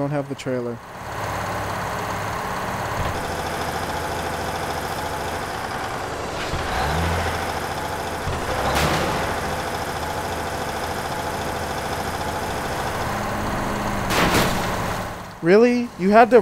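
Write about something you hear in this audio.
A heavy truck engine hums steadily as it drives.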